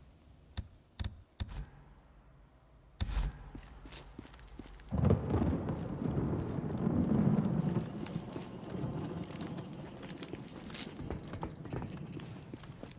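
Footsteps scuff on concrete.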